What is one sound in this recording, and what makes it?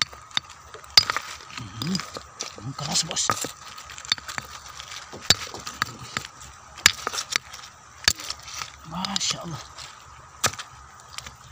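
A hammer strikes a rock with sharp, ringing knocks.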